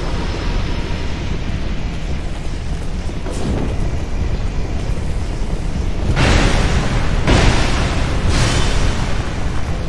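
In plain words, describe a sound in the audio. A sword swings through the air with a whoosh.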